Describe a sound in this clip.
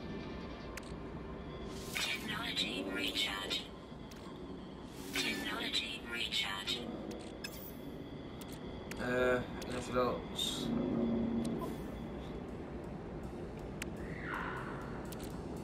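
Game menu sounds click and chime as options open and close.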